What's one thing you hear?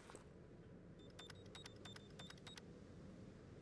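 An electronic keypad beeps quickly several times.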